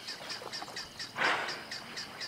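A hippo snorts and blows a spray of water.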